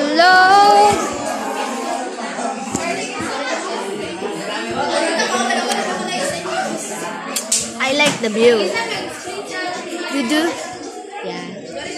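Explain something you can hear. Many young people chatter in the background of an echoing room.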